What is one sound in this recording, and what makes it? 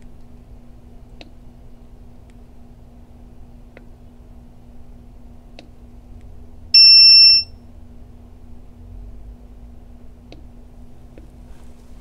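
A finger presses buttons with soft clicks.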